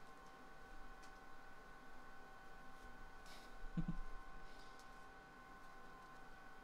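Trading cards rustle and slide against each other as they are shuffled by hand.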